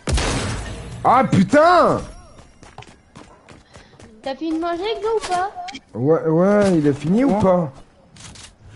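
A young man speaks excitedly close to a microphone.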